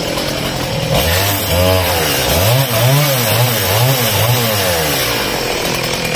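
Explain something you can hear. A chainsaw engine revs up and down as it cuts into a tree trunk.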